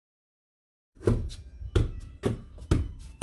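A football thumps against a hard floor and a foot.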